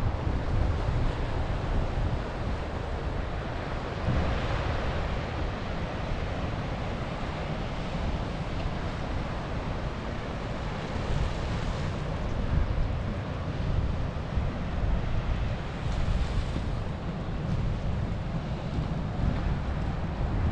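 Waves crash and surge against a rocky shore.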